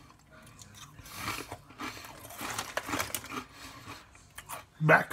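A man crunches potato chips.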